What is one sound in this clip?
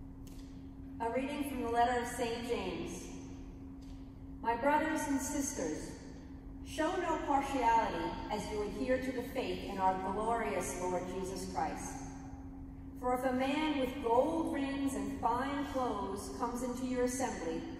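A woman speaks calmly into a microphone, heard through loudspeakers in an echoing hall.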